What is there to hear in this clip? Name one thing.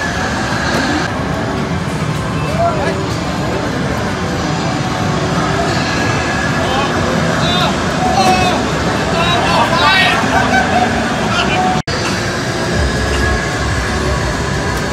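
Arcade racing games roar with engine noise and music.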